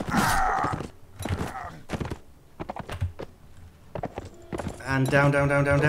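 Horse hooves thud in a quick gallop.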